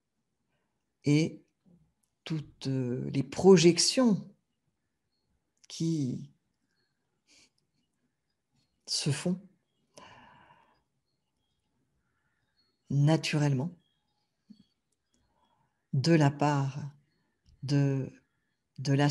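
A middle-aged woman speaks calmly and warmly, close to a microphone, with pauses.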